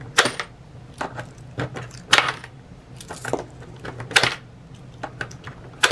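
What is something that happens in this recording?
Coins drop into a coin bank with sharp clicks.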